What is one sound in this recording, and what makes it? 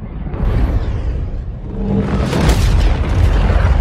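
Metal armour shatters with a loud crash.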